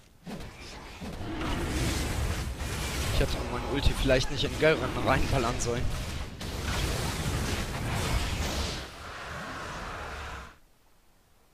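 Spell effects whoosh and crackle in a game fight.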